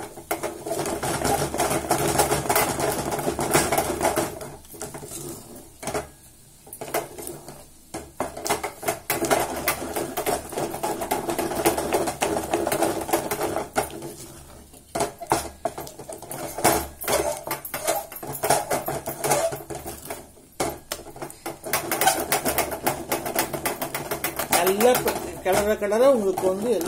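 A wooden spoon handle stirs and scrapes thick ragi dough in a steel pot.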